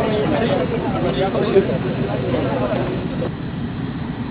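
Several men and women chat nearby.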